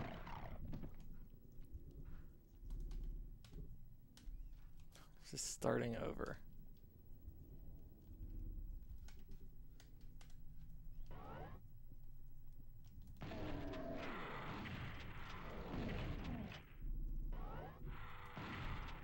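Gunshots from a video game bang in quick bursts.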